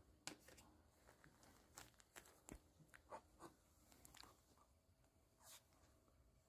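A small dog scuffles and tugs at a soft toy on carpet.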